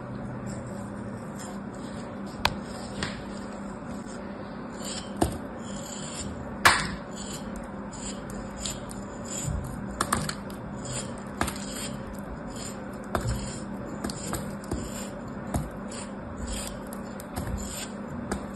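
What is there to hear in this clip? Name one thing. A blade scrapes and crunches through soft sand, close up.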